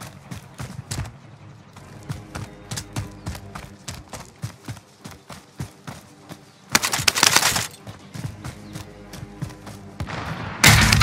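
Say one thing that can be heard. Footsteps patter quickly over dirt and grass.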